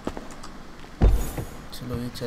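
A car door shuts with a heavy thump.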